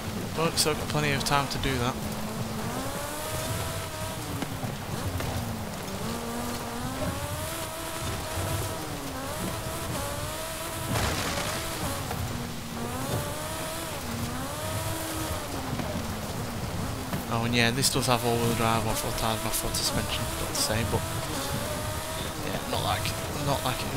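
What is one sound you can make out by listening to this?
A small car engine revs up and down as it speeds along.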